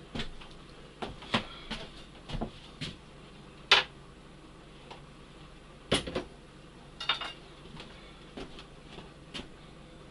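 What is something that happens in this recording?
Dishes and utensils clink and clatter nearby.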